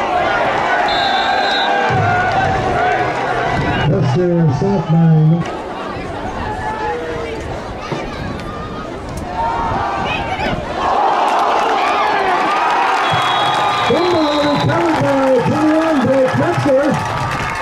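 A crowd cheers and chatters outdoors in the stands.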